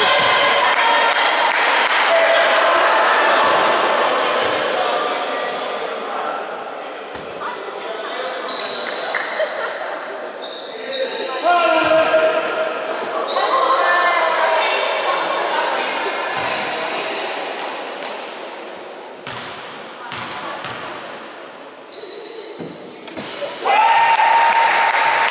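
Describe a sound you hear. Basketball shoes squeak sharply on a wooden floor.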